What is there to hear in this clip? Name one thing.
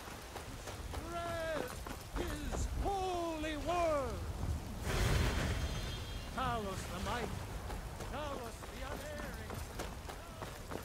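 A man preaches loudly with passion.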